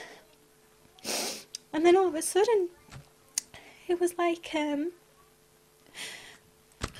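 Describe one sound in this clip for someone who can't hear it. A woman breathes in sharply between sung phrases.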